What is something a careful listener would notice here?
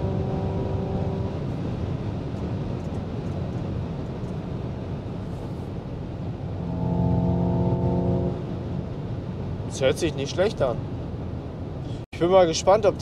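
A car engine hums with a low road rumble.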